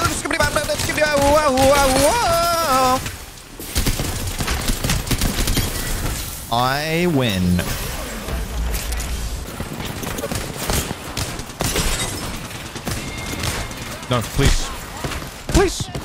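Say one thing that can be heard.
Rapid gunfire cracks and rattles close by.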